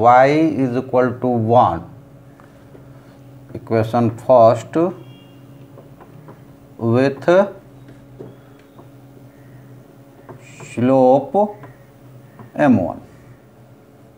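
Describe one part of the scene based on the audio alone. A man speaks calmly and clearly nearby, in short phrases with pauses.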